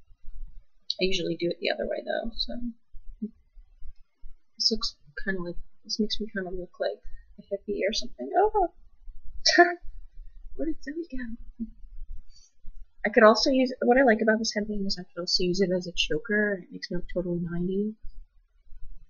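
A young woman talks casually close to a microphone, in short bursts with pauses.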